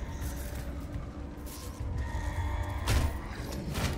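Metallic clicks sound as a gun is handled.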